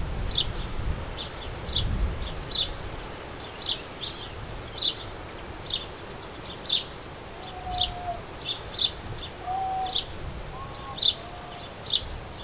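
A sparrow chirps sharply and repeatedly close by.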